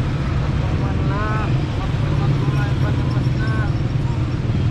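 An elderly man talks casually nearby, outdoors.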